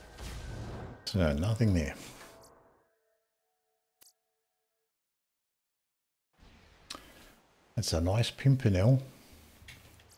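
A man talks calmly, close to a microphone.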